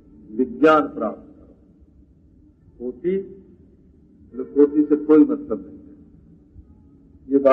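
An elderly man speaks slowly and calmly, close by, with pauses.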